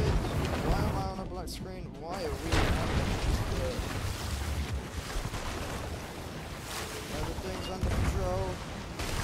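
Water sloshes and splashes in a wooden bucket.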